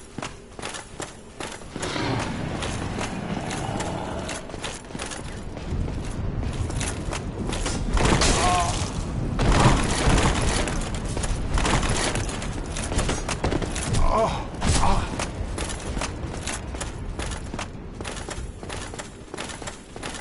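Armored footsteps clank on stone.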